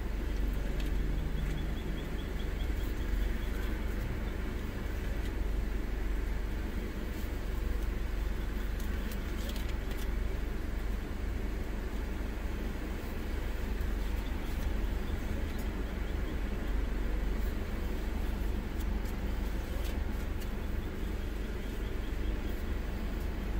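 A car engine idles steadily, heard from inside the car.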